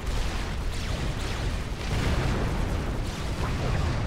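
Weapons fire in short bursts.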